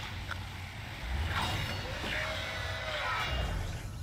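A heavy metal door slides open with a hiss.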